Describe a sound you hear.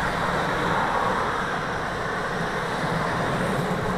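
A panel van drives past close by.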